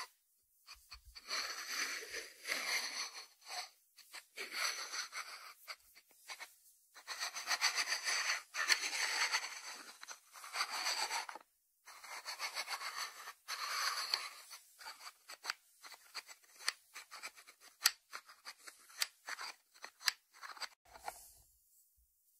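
Fingers turn a ceramic lid on its jar, rubbing and scraping softly.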